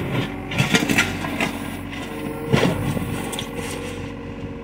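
An excavator bucket scrapes and knocks across soil.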